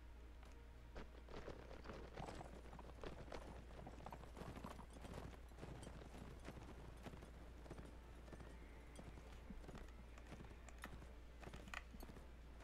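Horses gallop, their hooves thudding on grass.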